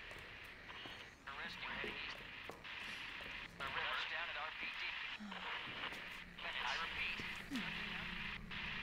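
Radio static hisses and crackles.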